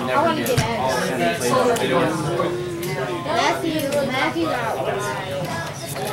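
Cards tap and slide on a table.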